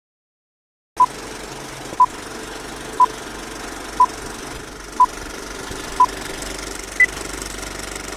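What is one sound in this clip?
A countdown beeps once each second, ending on a higher beep.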